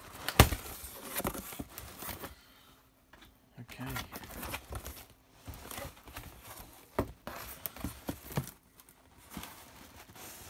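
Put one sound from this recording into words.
Cardboard scrapes and rustles as a hand handles a box.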